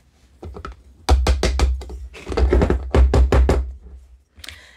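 A metal spoon taps and scrapes against a plastic funnel.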